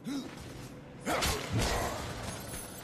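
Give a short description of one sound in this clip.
Heavy blows smash through a wall with a loud crash.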